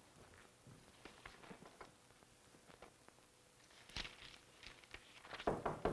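Paper rustles as it is unfolded.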